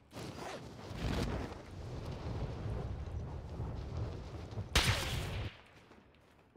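Wind rushes loudly, then stops suddenly.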